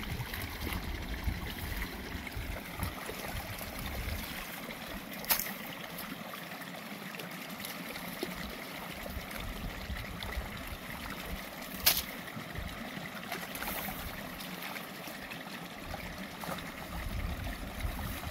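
A sickle slices through rice stalks with crisp cuts.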